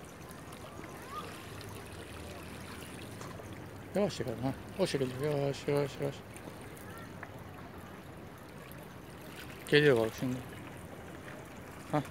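Small waves lap gently against rocks at the shore.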